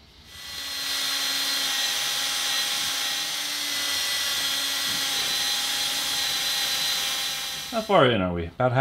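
An electric drill whirs steadily as it bores into metal.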